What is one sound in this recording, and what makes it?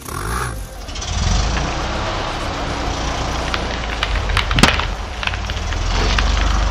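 A car tyre spins and splashes through water.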